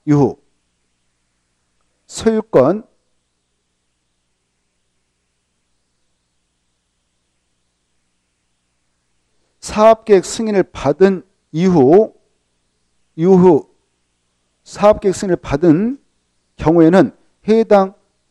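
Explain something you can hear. A middle-aged man speaks calmly through a close microphone, pausing often.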